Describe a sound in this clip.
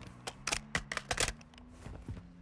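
Metallic clicks and clacks of a rifle being handled.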